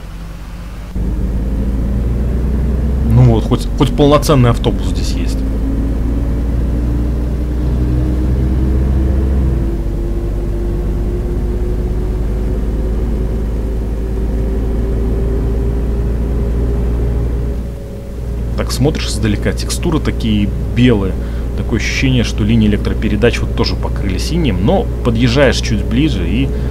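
A bus engine drones steadily, its pitch slowly rising as it picks up speed.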